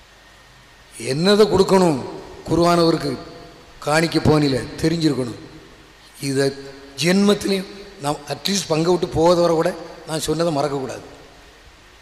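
A man speaks with animation through a microphone and loudspeakers.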